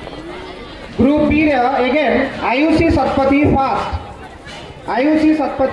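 A man speaks loudly into a microphone over a loudspeaker, echoing outdoors.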